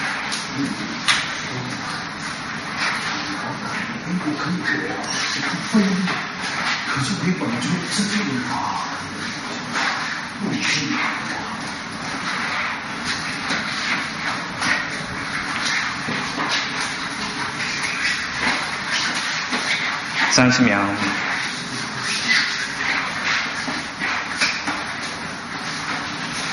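An older man talks calmly nearby.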